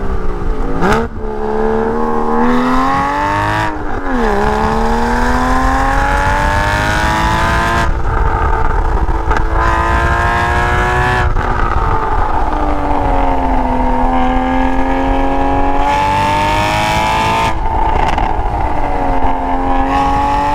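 Tyres roll steadily on smooth pavement.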